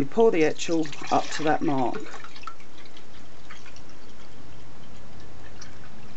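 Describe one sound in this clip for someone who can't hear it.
Liquid pours into a plastic cup.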